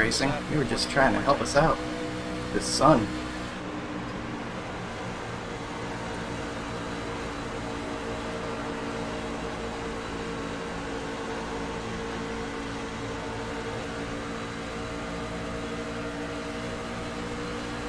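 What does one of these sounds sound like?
A race car engine drones steadily at high speed.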